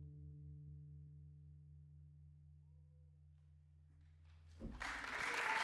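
A double bass plays low, sustained notes.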